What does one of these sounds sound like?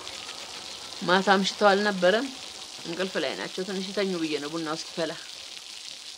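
A middle-aged woman answers calmly nearby.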